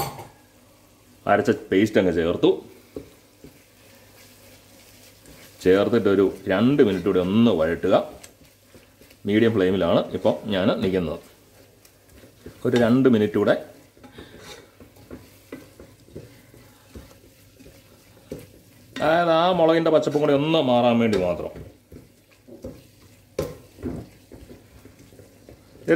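A wooden spatula scrapes and stirs food in a metal pot.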